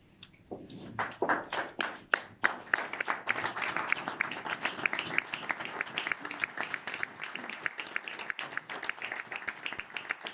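A small group of people applaud.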